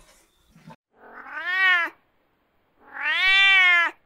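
A cat meows loudly twice.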